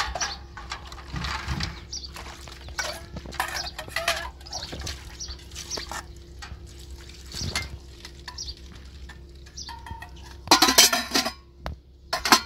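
Water pours and splashes onto metal dishes.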